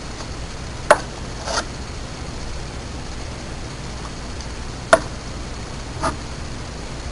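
A glass test tube clinks against a glass.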